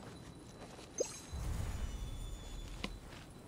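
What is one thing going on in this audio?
A bright magical chime rings out and fades.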